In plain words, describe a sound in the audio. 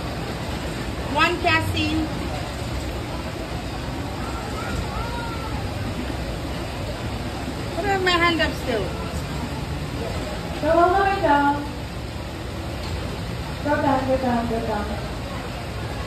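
Riders on a roller coaster scream in the distance.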